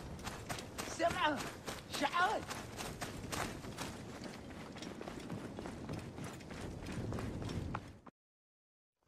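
Footsteps patter quickly across a hard floor.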